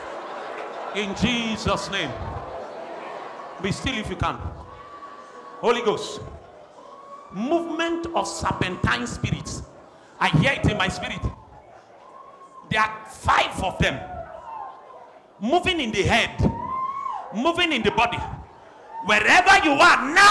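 An elderly man preaches forcefully through a microphone in a large hall.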